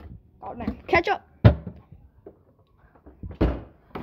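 A refrigerator door thumps shut.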